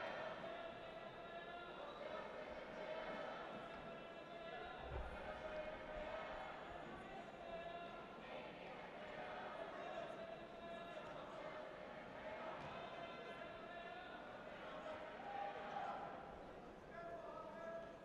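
A crowd of spectators cheers and chants in a large echoing hall.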